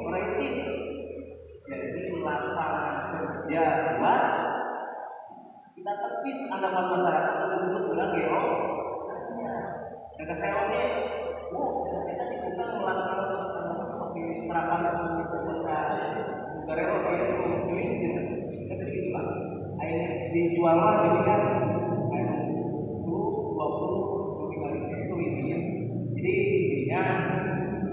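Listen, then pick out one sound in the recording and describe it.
A man speaks with animation through a microphone and loudspeaker in an echoing room.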